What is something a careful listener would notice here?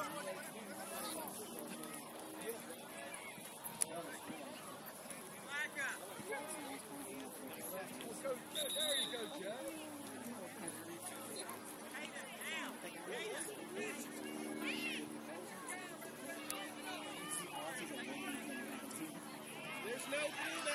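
Young players and adult spectators shout and chatter in the distance, outdoors.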